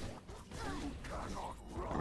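Game fire magic roars and crackles.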